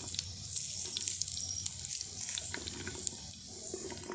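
Onions tumble into a pot.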